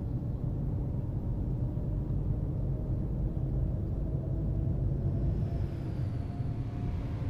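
A bus engine hums steadily at cruising speed.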